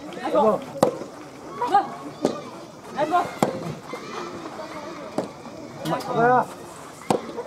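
Young players shout short calls during the rally.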